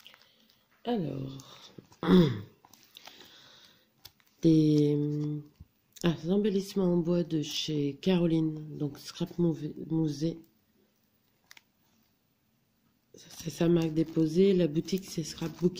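A plastic packet crinkles as hands handle it.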